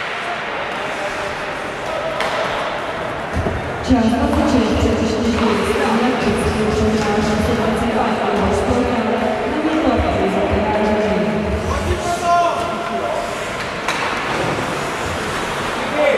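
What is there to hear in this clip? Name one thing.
Ice skates scrape and swish across the ice in a large echoing rink.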